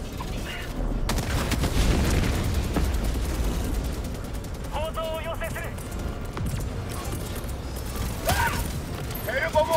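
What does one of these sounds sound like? Deep explosions rumble and boom nearby.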